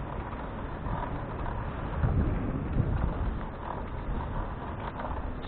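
Wind rumbles and buffets against a moving vehicle.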